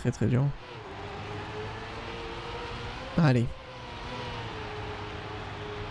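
A racing car engine hums steadily throughout.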